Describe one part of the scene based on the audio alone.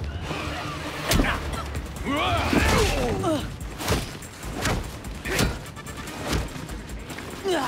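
Punches and blows land with heavy thuds.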